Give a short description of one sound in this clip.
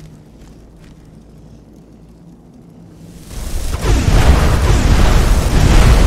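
A magic spell crackles and hums.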